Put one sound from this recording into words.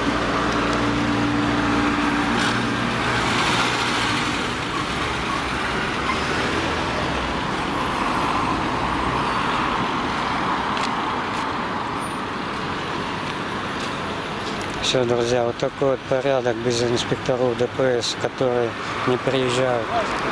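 Traffic drones steadily in the distance outdoors.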